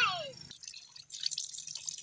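Water splashes from a tap onto hands.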